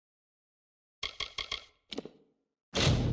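Menu selection clicks tick quickly in a row.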